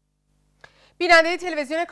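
A woman speaks calmly and clearly into a microphone.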